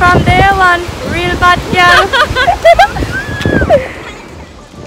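Young women laugh close by.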